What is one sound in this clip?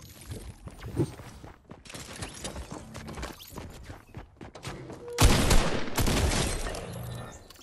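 A shotgun fires loudly.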